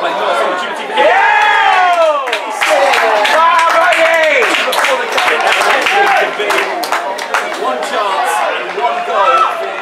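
A small crowd of spectators cheers loudly and then settles.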